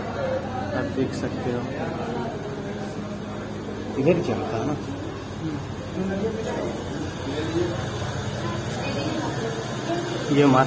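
A crowd of men, women and children chatter nearby in an echoing room.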